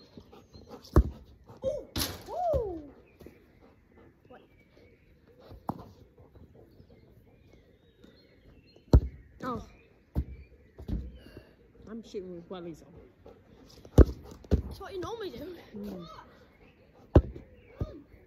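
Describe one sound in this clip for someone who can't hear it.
A football is kicked with sharp thuds outdoors.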